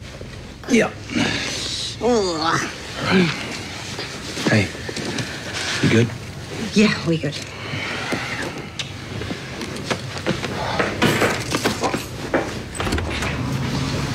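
A toddler babbles and fusses.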